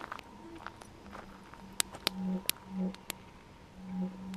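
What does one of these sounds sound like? A campfire crackles and pops.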